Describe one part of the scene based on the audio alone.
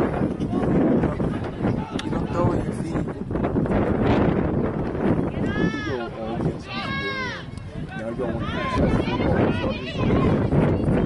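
Spectators nearby talk and call out.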